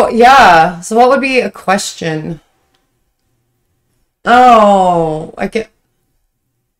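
A woman speaks with animation close to a microphone.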